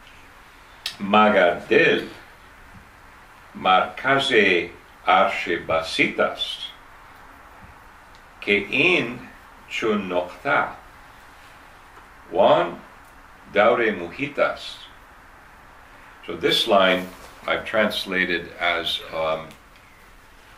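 A man reads aloud calmly, close by.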